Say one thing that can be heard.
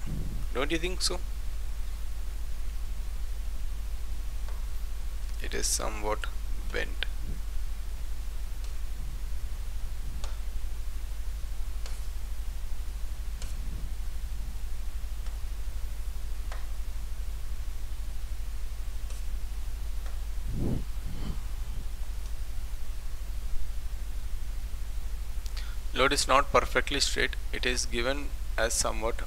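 A man speaks calmly, with long pauses, close to a microphone.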